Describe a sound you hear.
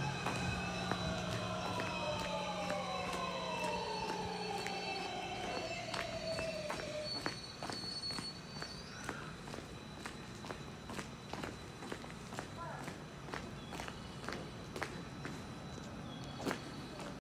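A train's wheels clatter over rail joints in a steady rhythm.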